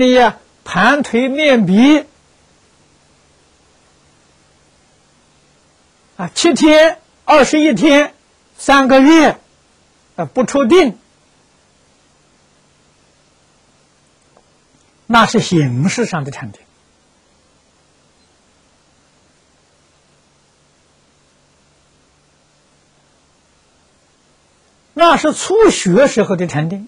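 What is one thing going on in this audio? An elderly man speaks calmly and slowly into a close microphone, with long pauses.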